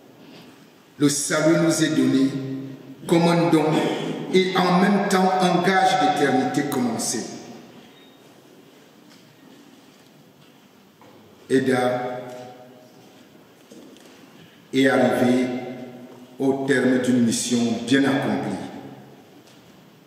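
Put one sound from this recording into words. A man speaks calmly into a microphone, with pauses, in a reverberant hall.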